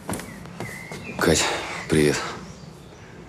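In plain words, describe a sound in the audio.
A man speaks briefly in a low, calm voice close by.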